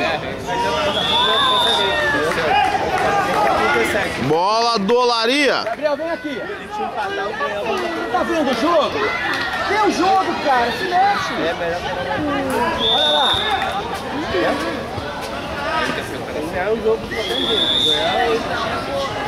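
A referee's whistle blows short, sharp blasts a few times.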